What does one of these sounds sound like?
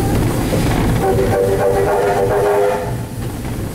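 A steam whistle blows a long, steady note.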